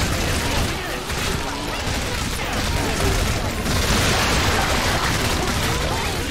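A weapon fires rapid shots.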